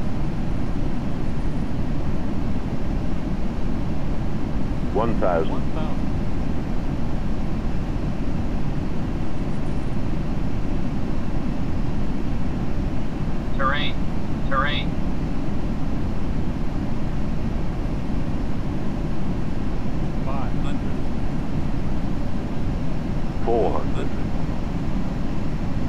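Jet engines roar with a steady low rumble.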